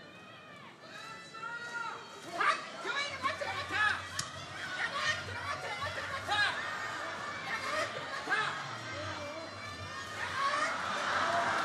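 A large crowd cheers and shouts in a big hall.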